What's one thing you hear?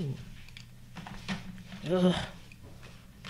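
Coloured pencils clatter as they are picked from a tin.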